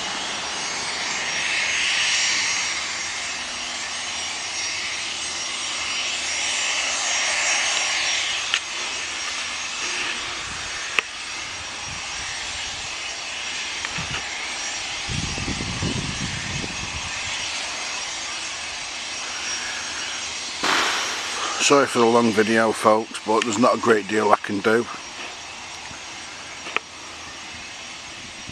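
A jet engine whines and roars steadily as a small jet taxis by outdoors.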